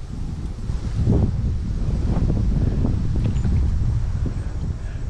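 A paddle dips and splashes softly in calm water.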